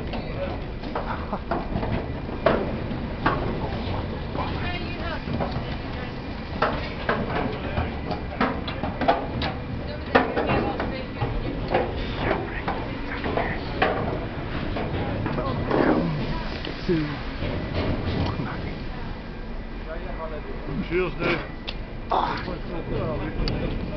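A large ship's engine rumbles steadily nearby.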